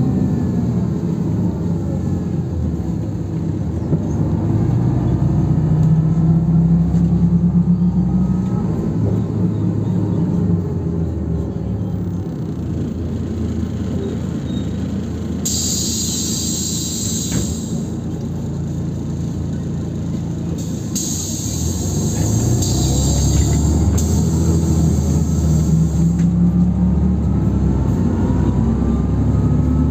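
A car engine hums steadily from inside a moving vehicle.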